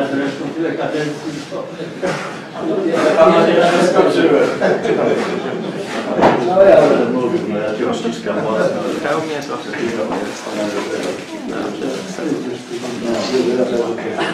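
Elderly men talk and chatter close by.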